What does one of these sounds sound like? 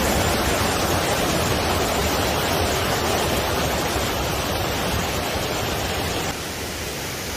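A mountain stream rushes and splashes loudly over rocks close by.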